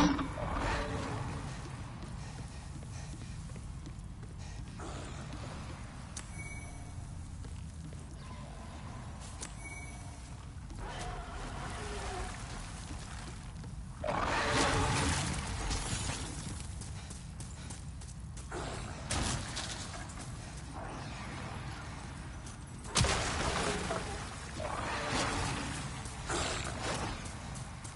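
Footsteps thud quickly on wooden boards.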